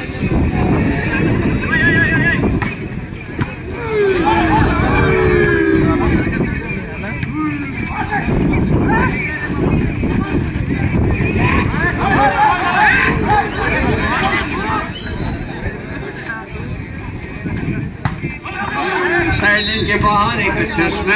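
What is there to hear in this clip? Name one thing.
A large outdoor crowd chatters and cheers throughout.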